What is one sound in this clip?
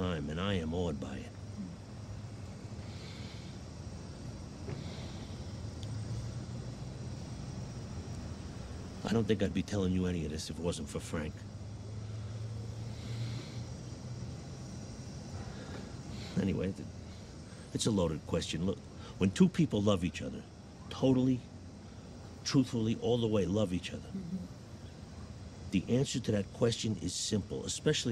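A man speaks quietly and earnestly close by.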